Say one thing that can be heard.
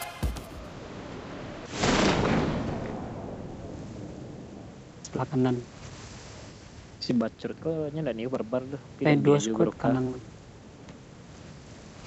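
Wind rushes loudly past, then slowly fades.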